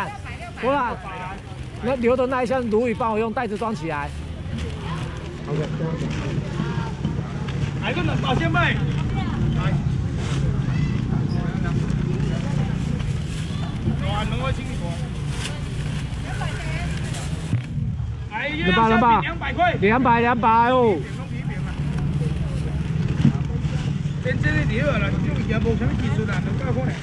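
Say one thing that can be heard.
A crowd murmurs and chatters all around outdoors.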